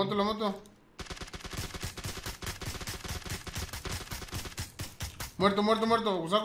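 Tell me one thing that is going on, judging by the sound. Gunshots fire rapidly in a long burst.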